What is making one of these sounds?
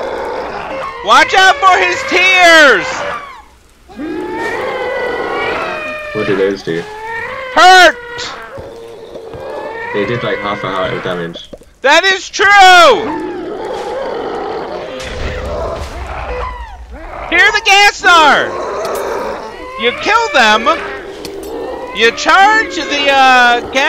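Eerie creatures wail and moan in high, wavering cries.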